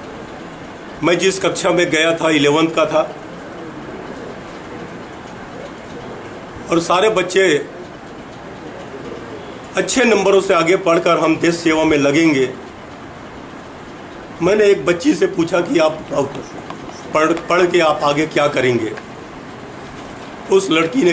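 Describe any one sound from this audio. An elderly man speaks calmly into microphones, in bursts with pauses.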